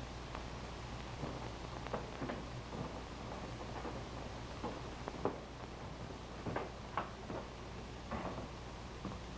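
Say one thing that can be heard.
Footsteps thud slowly up creaking wooden stairs.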